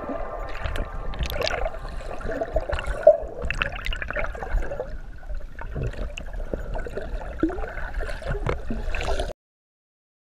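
Water sloshes and bubbles close by, heard from underwater.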